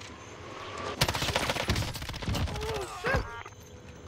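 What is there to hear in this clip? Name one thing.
Rapid gunshots ring out in bursts.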